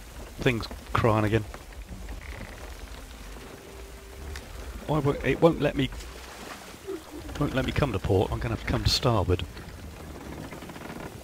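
Wind blows through a ship's sails and rigging.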